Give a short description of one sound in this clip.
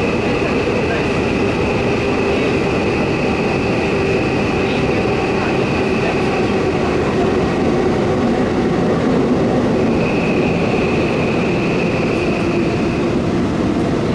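A train's motor whines at a high, steady pitch.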